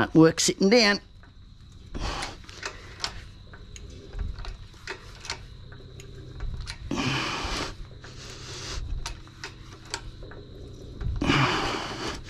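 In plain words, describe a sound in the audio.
A hydraulic jack's handle is pumped with metallic clicks and clanks.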